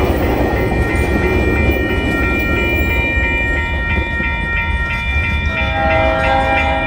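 A freight train rumbles past on the tracks.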